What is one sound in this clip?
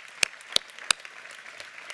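Three loud, sharp claps ring out close by.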